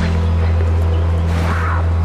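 A waterfall rushes in the distance.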